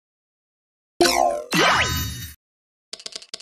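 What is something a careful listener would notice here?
A whooshing magic blast bursts loudly.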